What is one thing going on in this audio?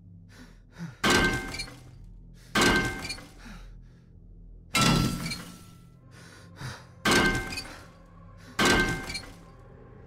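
A metal wrench strikes a car body with loud clanging blows.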